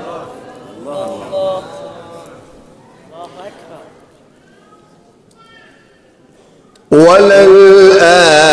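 A man chants melodically into a microphone, loud and close, in a reverberant space.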